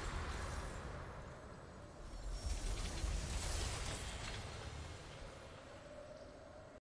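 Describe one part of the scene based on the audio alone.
A triumphant game fanfare swells with a deep rumble.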